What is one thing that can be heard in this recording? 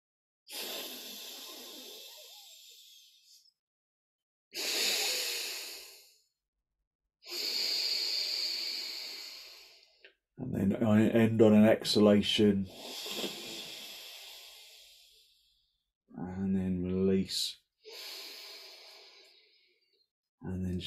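A man breathes deeply and slowly, close by.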